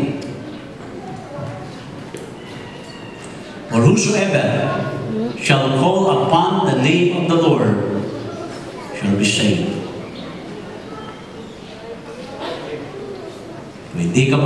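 A middle-aged man speaks with animation through a microphone and loudspeakers in an echoing hall.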